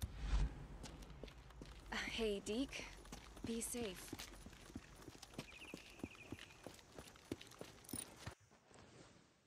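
Footsteps crunch on gravel at a brisk walk.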